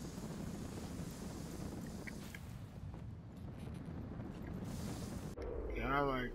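A snowboard scrapes and hisses over snow.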